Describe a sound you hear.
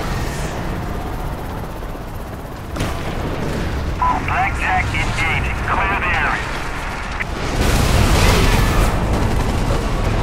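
A deep rumble of battle fills the air.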